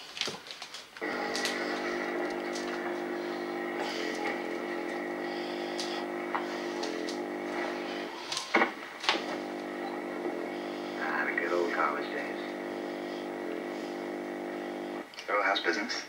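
A television buzzes with a steady hum.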